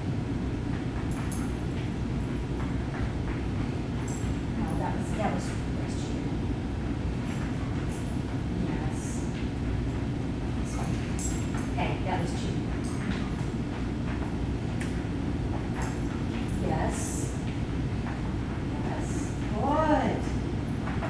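A dog's paws patter on a rubber floor.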